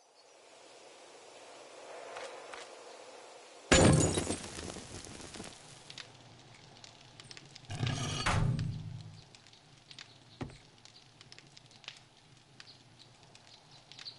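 A fire crackles in a fireplace.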